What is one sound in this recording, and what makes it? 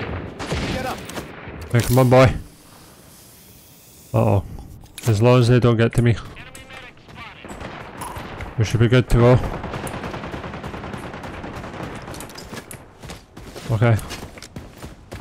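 A man talks into a close microphone in bursts, with animation.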